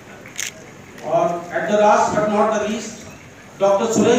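A man speaks through a loudspeaker.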